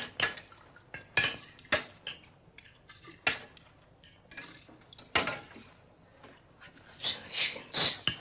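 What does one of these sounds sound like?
Metal pots clink and clatter on a stove.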